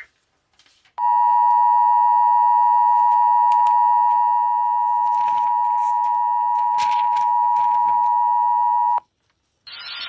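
A loud, steady two-tone alert sounds through a small loudspeaker.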